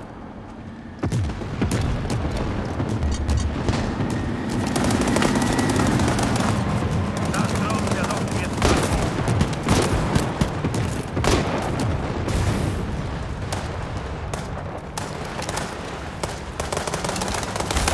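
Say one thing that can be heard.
A tank engine rumbles and clanks nearby.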